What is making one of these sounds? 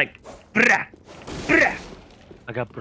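A sword swishes and clashes in combat.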